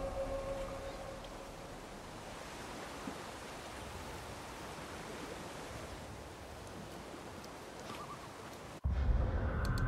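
Water flows gently nearby.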